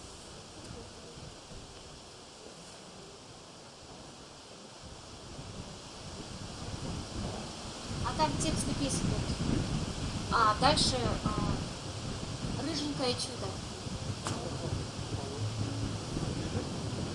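An acoustic guitar is strummed, heard outdoors.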